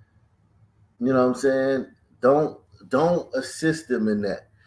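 A man speaks with animation, close up.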